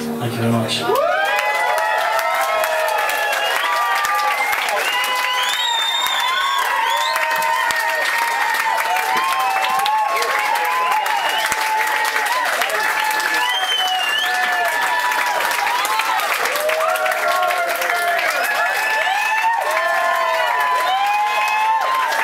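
An audience claps and applauds.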